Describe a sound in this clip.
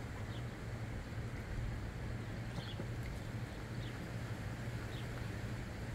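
Water sloshes gently as a large cat shifts in a shallow pool.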